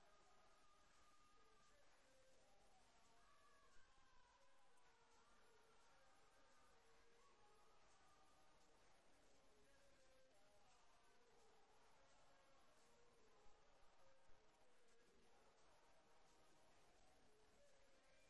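A crowd of men and women sings together in an echoing hall.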